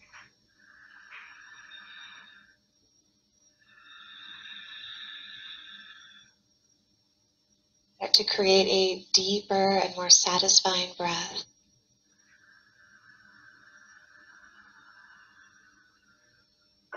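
A young woman breathes slowly and deeply in and out.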